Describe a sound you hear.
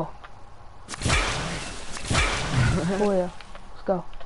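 Leafy bushes rustle loudly as someone pushes through them.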